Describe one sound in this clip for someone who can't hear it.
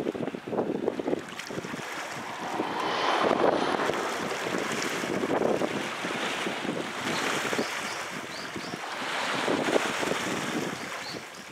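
Small waves wash and lap on calm sea water.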